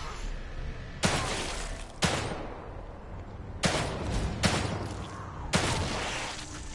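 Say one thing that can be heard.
A pistol fires several loud shots, each followed by a short echo.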